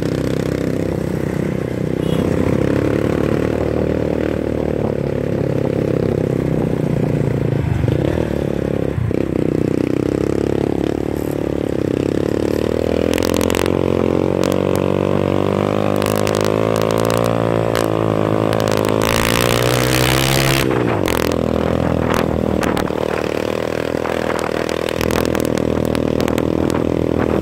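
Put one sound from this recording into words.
A small motorcycle engine runs close by, ridden uphill.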